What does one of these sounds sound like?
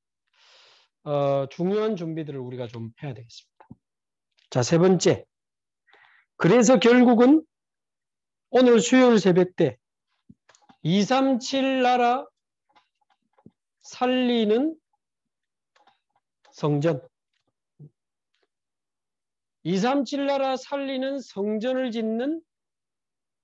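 A man speaks calmly and clearly in short phrases, close by.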